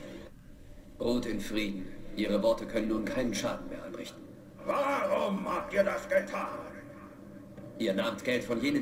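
A man speaks slowly and weakly, close by.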